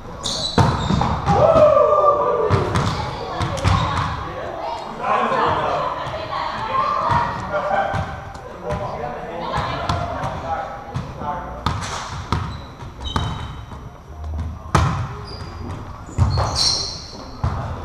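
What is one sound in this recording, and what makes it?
A volleyball is struck with sharp thuds that echo in a large hall.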